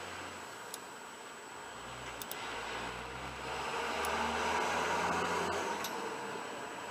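A metal lever clicks and rattles as it is worked by hand.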